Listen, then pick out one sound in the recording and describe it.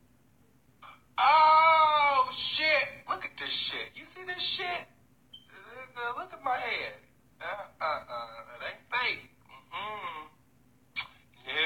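A man talks loudly and with animation close to a phone microphone.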